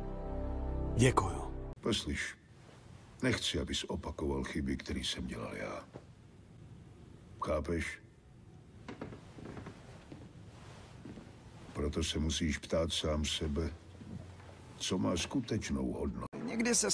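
An older man speaks calmly in a low, gravelly voice.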